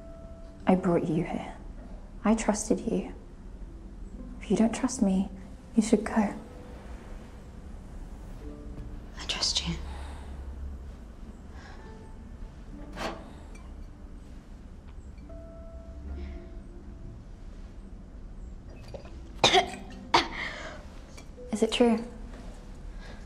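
A young woman speaks quietly and tensely nearby.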